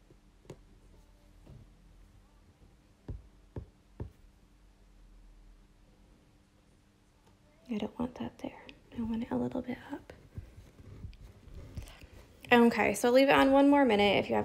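A needle and thread pull softly through taut fabric.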